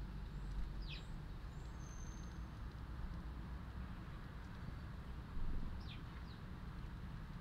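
Small birds chirp briefly now and then, close by outdoors.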